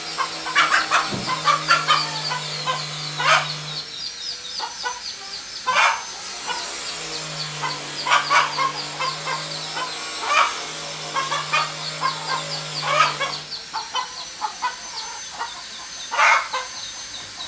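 A hen clucks softly now and then.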